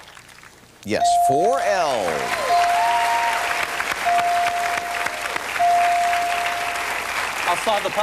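Bright chimes ring out one after another.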